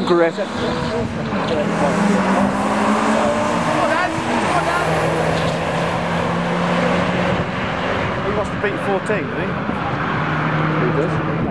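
Two car engines roar loudly as the cars accelerate hard down a track.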